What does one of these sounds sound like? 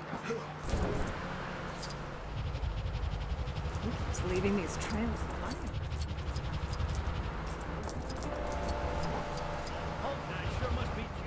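Small coins chime in quick bright tinkles as they are collected.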